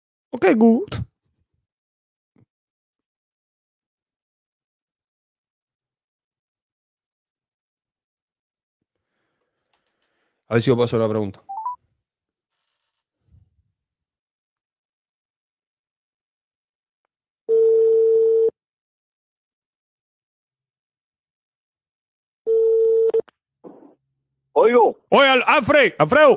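A young man speaks into a close microphone with animation, in short bursts between long silences.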